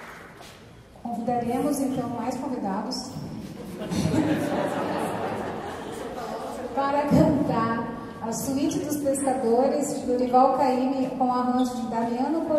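A mixed choir of men and women sings together in a lively rhythm.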